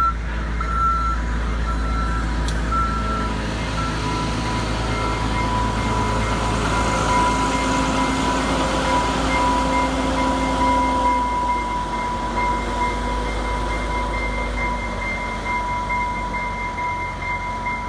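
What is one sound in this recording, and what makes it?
Freight cars rumble and clatter over rails close by.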